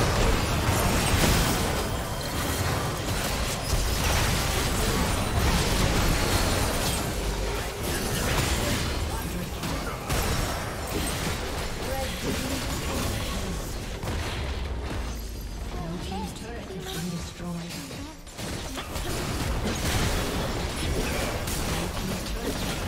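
Magic blasts crackle and boom in a rapid fight.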